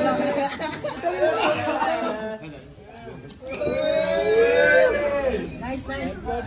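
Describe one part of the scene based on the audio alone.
Young men cheer and shout with excitement.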